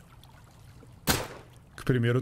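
A gun fires a single shot.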